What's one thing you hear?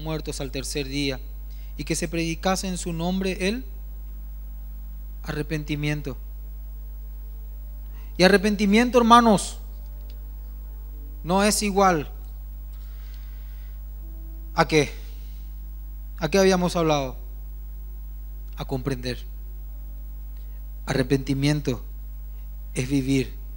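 A man speaks into a microphone in bursts, with pauses between phrases.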